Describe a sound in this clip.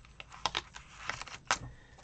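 A pen scratches on paper.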